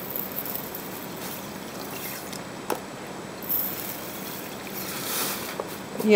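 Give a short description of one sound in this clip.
Sugar is tipped from a spoon into a metal pan.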